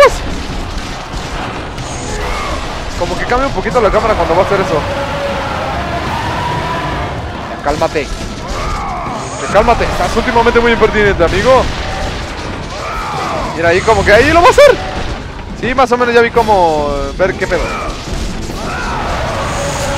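Game battle sounds clash and roar.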